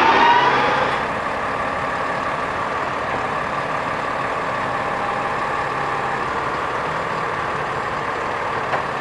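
A garbage truck engine idles with a steady rumble.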